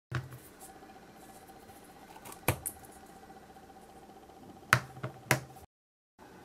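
Plastic clicks and taps as a syringe is handled.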